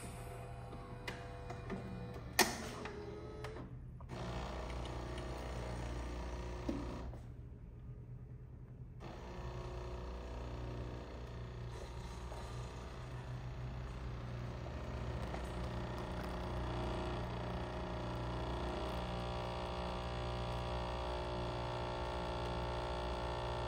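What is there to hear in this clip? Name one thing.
A coffee machine hums and whirs steadily.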